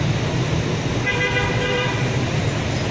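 A vehicle horn beeps briefly.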